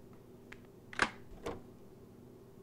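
An electronic door lock clicks open.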